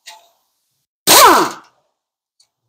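An impact wrench buzzes briefly on a bolt.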